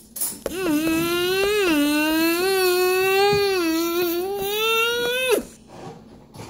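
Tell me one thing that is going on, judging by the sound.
A small plastic toy taps on a hard surface.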